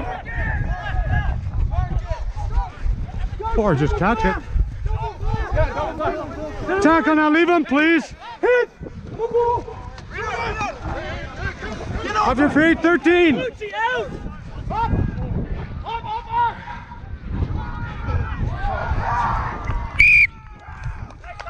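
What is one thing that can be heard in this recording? Young men shout and call out to each other on an open field.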